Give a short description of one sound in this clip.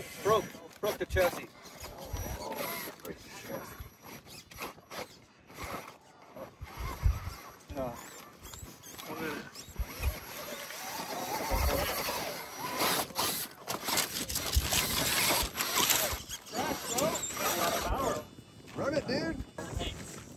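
Rubber tyres scrape and grind over rock.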